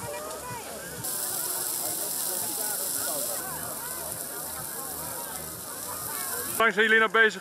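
A large bonfire roars and crackles.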